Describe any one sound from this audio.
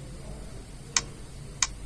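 A finger presses a button with a soft click.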